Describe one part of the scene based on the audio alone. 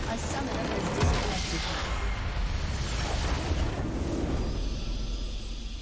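A big magical explosion booms as a structure is destroyed.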